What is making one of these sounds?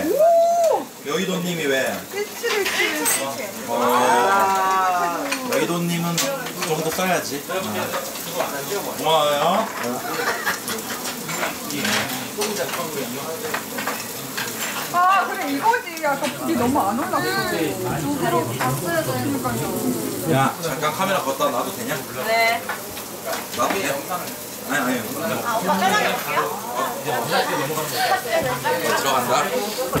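Several young women and men chat and laugh together close by.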